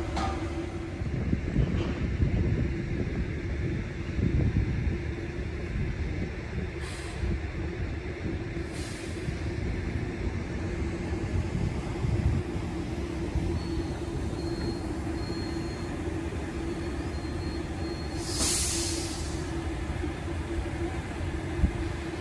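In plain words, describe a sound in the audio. A bus engine hums and rumbles nearby outdoors.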